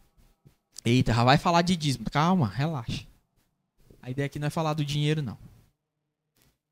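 A man speaks with animation into a microphone over loudspeakers in an echoing hall.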